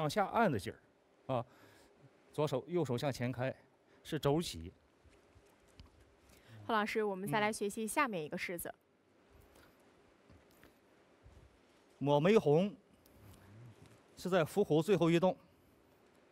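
A man speaks calmly into a microphone, explaining in short bursts.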